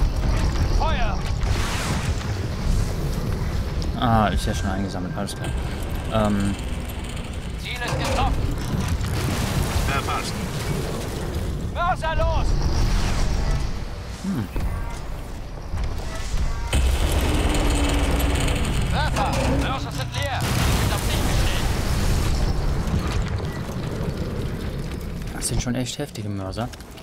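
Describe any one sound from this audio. Explosions rumble deeply.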